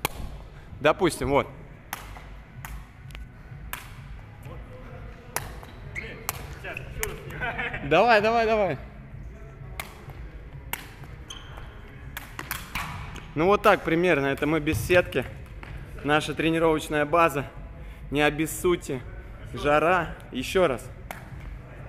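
A ball bounces and thuds on a hard floor in an echoing hall.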